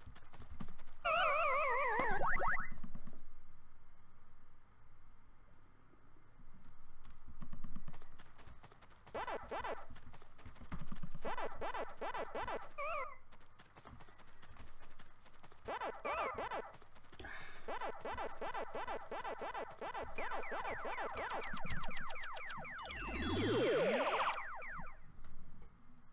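Retro video game sound effects chirp and bleep.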